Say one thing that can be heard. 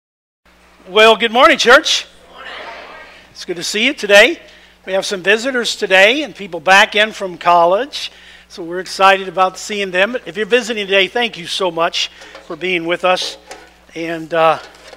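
A middle-aged man speaks calmly through a microphone in a large room.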